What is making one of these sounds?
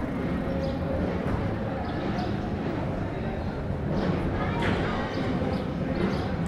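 A crowd murmurs at a distance outdoors.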